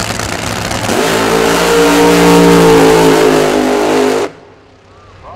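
A dragster engine roars at full power as the car launches and speeds away.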